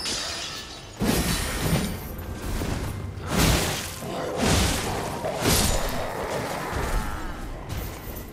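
A sword slashes and strikes in quick blows.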